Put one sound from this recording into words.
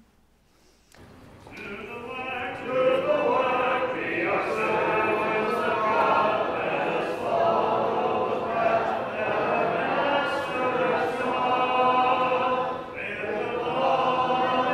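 A man sings a hymn through a microphone.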